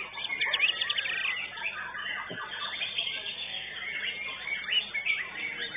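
A songbird sings rapid, chirping trills close by.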